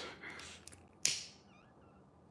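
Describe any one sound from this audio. A lighter clicks as it is struck.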